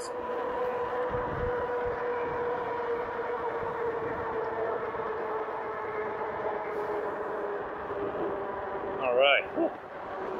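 Wind rushes past while riding outdoors.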